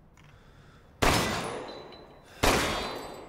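Pistol shots ring out loudly and echo.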